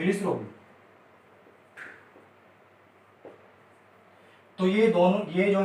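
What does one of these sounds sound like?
A man speaks calmly, close by, like a teacher explaining.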